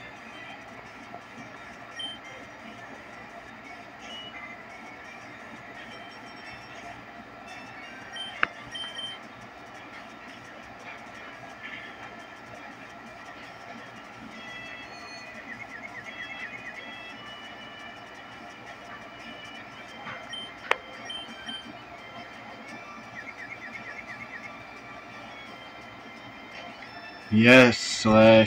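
Chiptune game music plays steadily.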